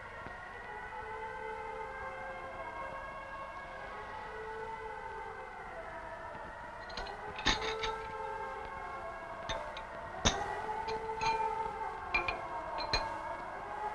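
Metal bars clink and rattle as a man handles them.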